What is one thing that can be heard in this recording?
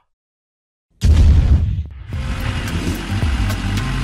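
A car engine rumbles and revs.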